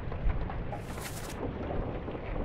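A page turns with a papery rustle.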